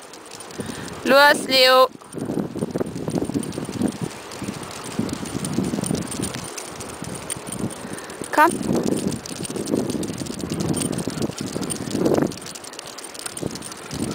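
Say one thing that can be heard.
Dogs' paws patter on wet tarmac.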